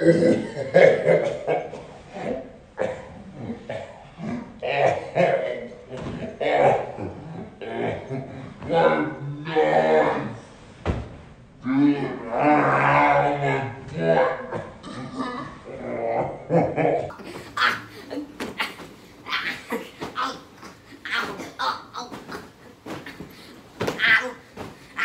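Pillows thump against bodies in quick hits.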